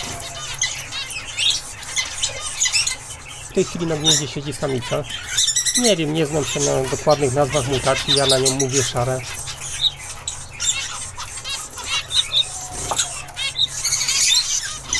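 Small finches chirp and twitter close by in quick, high bursts.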